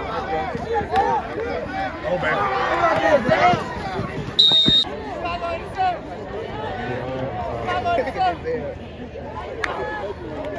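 A crowd cheers and shouts across an open-air stadium.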